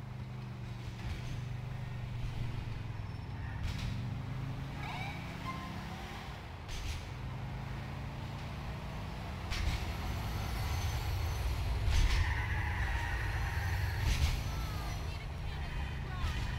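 Car tyres screech while skidding around a corner.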